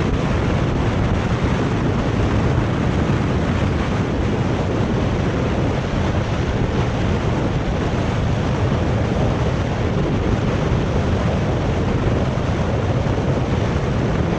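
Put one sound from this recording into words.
Bicycle tyres hum on an asphalt road.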